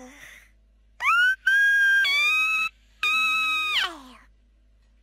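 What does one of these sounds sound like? A kitten meows loudly in a high, sweet voice.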